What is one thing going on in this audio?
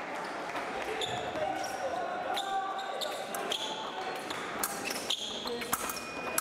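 Shoes squeak and scuff on a hard floor.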